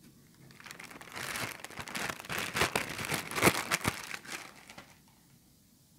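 Plastic wrap crinkles loudly close by.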